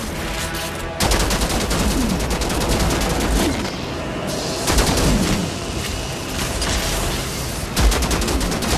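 Heavy impacts thud.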